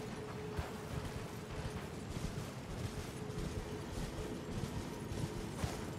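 Hooves thud on grass and dirt.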